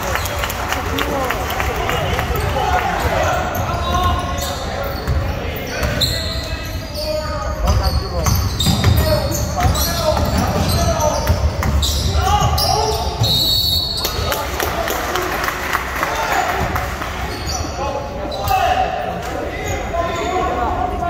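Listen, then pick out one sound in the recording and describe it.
A basketball bounces on a wooden court floor.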